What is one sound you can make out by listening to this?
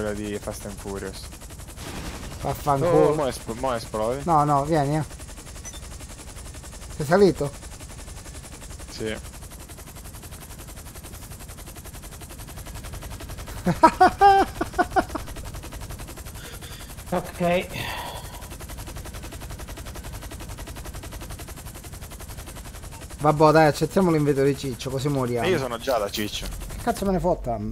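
A helicopter's rotor drones steadily.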